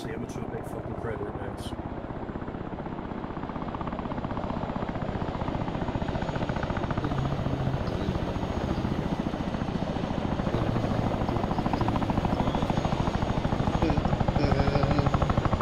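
A helicopter's rotor thuds steadily and grows louder as it approaches.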